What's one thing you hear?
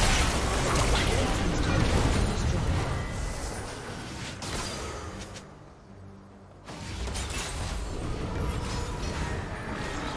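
Spells blast and crackle in a fast game battle.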